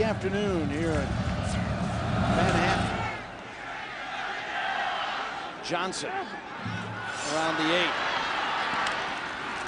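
A large stadium crowd cheers and roars outdoors.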